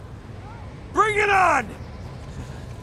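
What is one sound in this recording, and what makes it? A man shouts loudly and defiantly.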